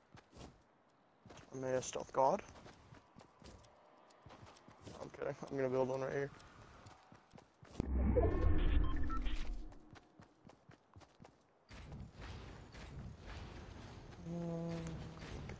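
Footsteps thud quickly on grass in a video game.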